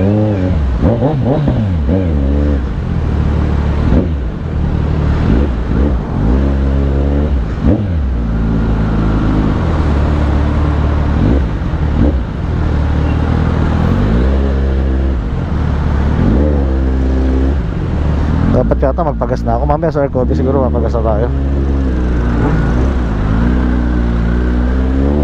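Traffic rumbles steadily all around.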